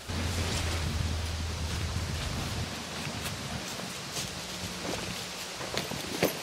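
Footsteps crunch through dry fallen leaves.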